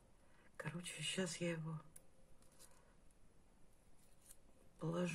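Papery garlic skins rustle and crackle as fingers peel a clove up close.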